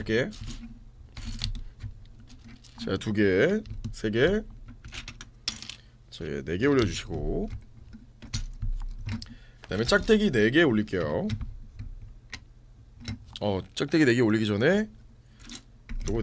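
Small plastic toy bricks click and clatter.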